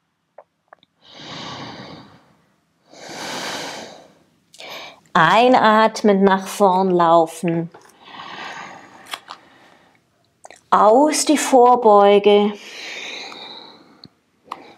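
A woman breathes in and out audibly.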